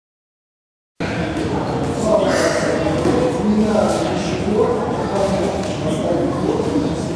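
A man instructs loudly in a large echoing hall.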